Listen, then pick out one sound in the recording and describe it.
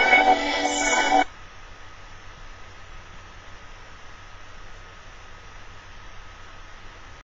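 Fabric rustles softly as a person shifts about.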